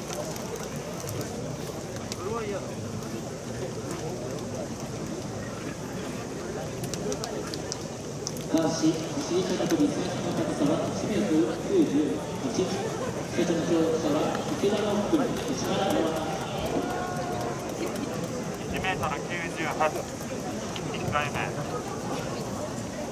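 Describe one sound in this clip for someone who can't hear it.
A crowd murmurs and chatters outdoors in a large open stadium.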